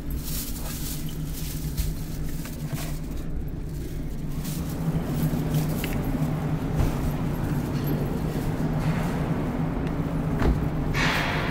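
A car engine hums steadily while driving slowly.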